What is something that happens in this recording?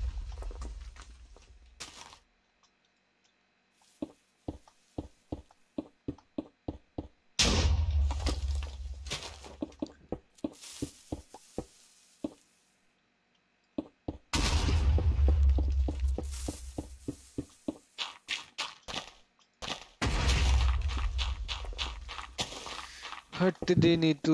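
Short gritty crunches sound as blocks break.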